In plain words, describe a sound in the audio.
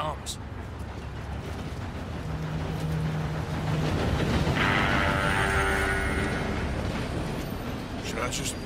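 A steam locomotive rumbles and hisses nearby.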